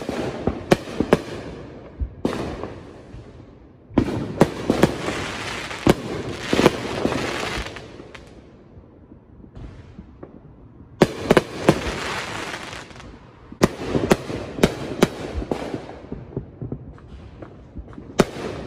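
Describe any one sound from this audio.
Fireworks bang and crackle outdoors, echoing off into the distance.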